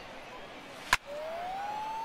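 A wooden baseball bat cracks against a ball.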